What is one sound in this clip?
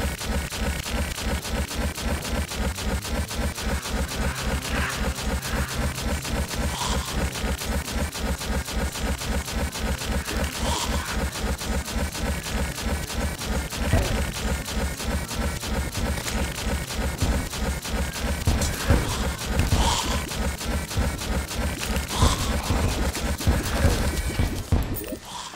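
A magic weapon fires rapidly with quick zapping bursts.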